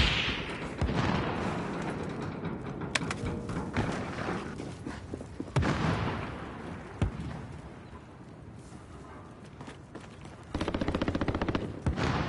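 A rifle fires single loud shots and then a rapid burst, with echoing booms.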